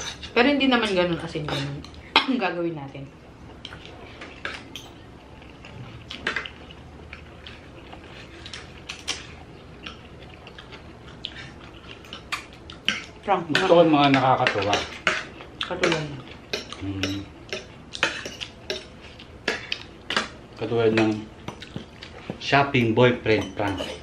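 Forks and spoons clink against plates.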